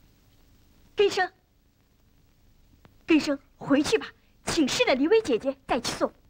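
A young boy shouts and laughs nearby.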